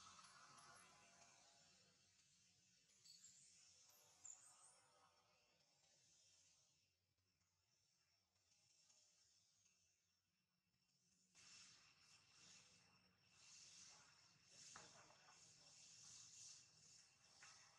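Dry leaves rustle softly as a small monkey shifts about.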